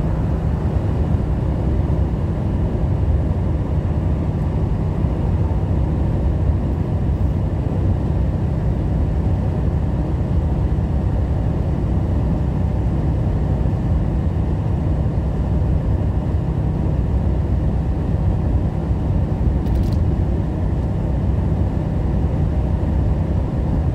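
A truck's engine drones steadily from inside the cab.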